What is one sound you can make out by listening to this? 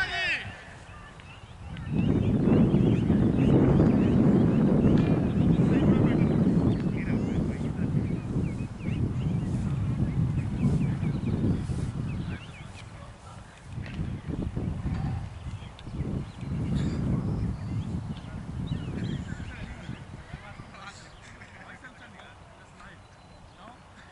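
Men talk and call to each other outdoors at a distance.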